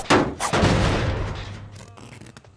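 A machine is kicked with a heavy metal clatter.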